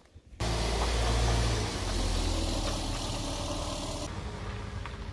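A car engine hums as a car drives slowly away.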